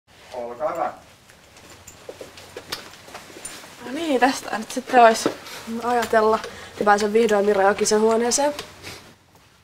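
A young woman talks casually nearby.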